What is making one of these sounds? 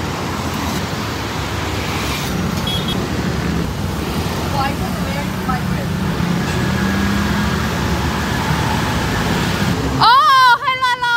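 Traffic rumbles steadily on a busy street.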